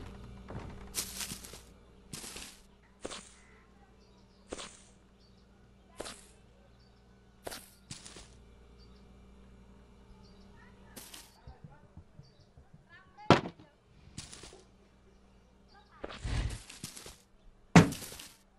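Light wooden objects knock and clatter as they are picked up and dropped.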